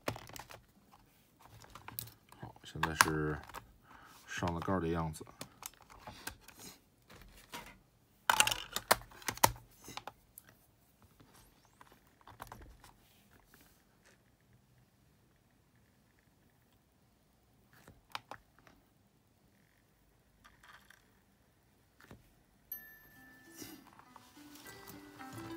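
Plastic clicks and knocks as a lid is handled and snapped shut.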